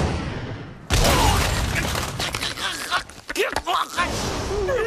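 A man screams in terror up close.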